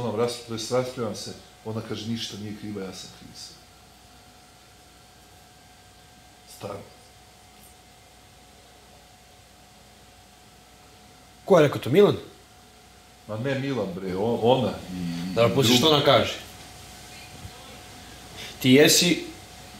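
Another man answers, raising his voice at times.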